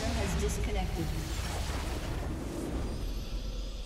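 A magic spell crackles and bursts with a loud whoosh.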